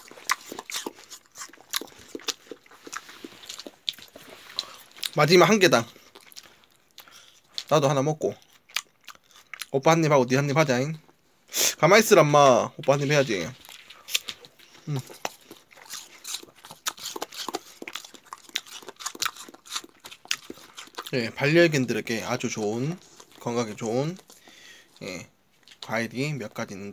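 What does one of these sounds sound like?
A dog licks and smacks its lips close by.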